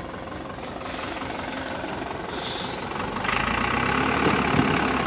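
A tractor engine rumbles steadily and grows louder.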